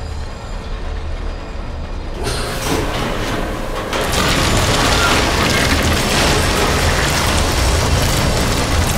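A heavy machine rumbles with a low, steady drone.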